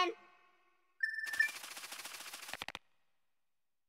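Rapid electronic ticking sounds as a game score counts up, then stops.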